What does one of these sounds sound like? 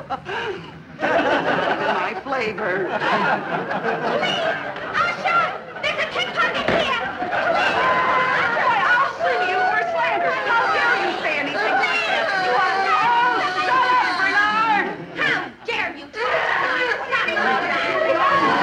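A crowd of women and children chatter all at once.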